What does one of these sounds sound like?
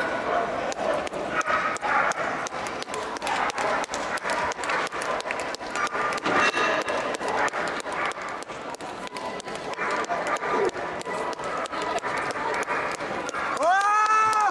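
Footsteps patter quickly as a handler runs with a dog.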